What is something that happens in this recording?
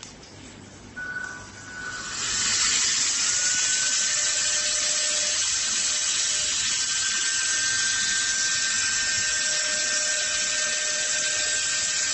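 A small electric pump whirs loudly with a steady high whine, sucking air.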